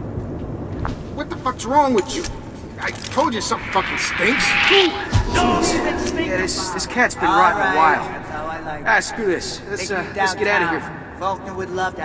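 Men talk and shout nearby with tense, raised voices.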